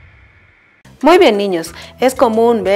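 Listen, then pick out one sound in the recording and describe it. A young woman speaks clearly and with animation to a microphone.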